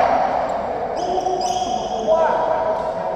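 Badminton players' shoes squeak on a wooden court floor.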